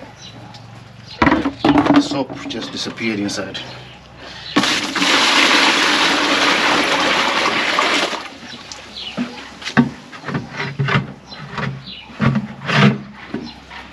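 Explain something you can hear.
Plastic containers knock and thud against each other.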